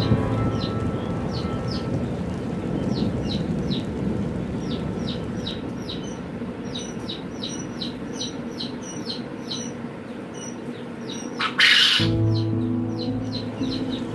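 Small birds chirp repeatedly nearby.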